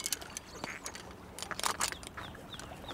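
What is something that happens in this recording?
Metal clips click and clatter up close.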